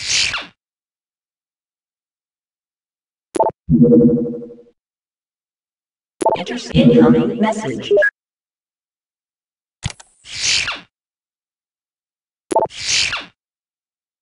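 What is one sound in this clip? Game interface sounds whoosh and click as menus open and close.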